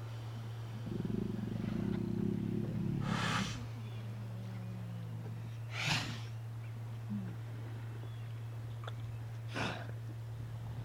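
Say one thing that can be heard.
Sea lions bark and growl close by.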